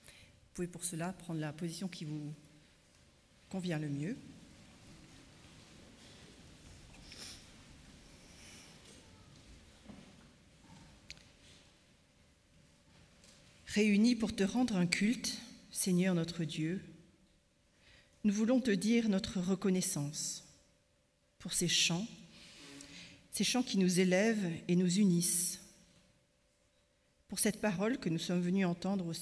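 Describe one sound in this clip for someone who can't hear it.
A middle-aged woman speaks slowly and calmly into a microphone, with pauses.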